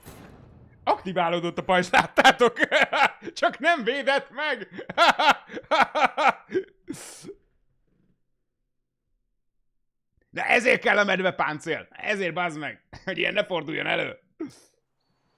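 A young man talks and laughs with animation close to a microphone.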